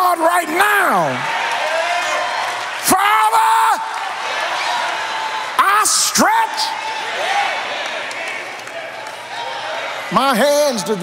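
A congregation cheers and shouts in a large echoing hall.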